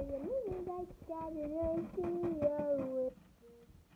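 Small plastic toys rattle and clatter against each other.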